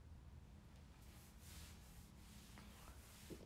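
Clothing rustles close by as a young girl moves.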